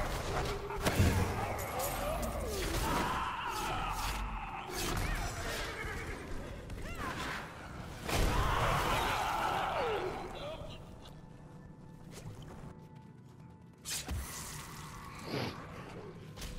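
Game spells crackle and blast in quick bursts.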